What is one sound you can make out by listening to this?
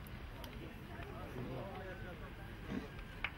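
Young men talk briefly at a distance.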